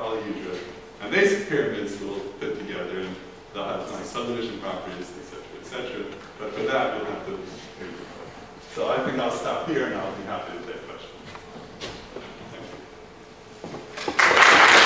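An elderly man lectures calmly through a microphone in a large room.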